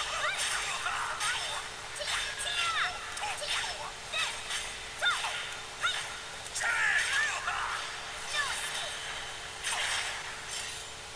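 Swords whoosh through the air in quick swings.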